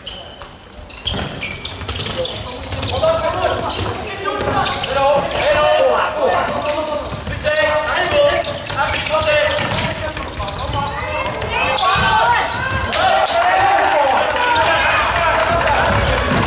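A crowd of spectators shouts and cheers loudly, filling the echoing hall.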